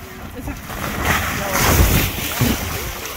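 A boy slides down into a shallow pool with a splash.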